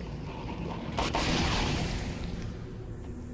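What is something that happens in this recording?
A bloated creature bursts with a loud wet pop.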